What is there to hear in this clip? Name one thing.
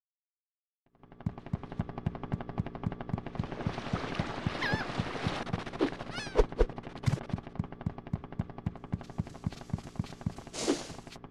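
A small cartoon character's footsteps patter quickly and evenly.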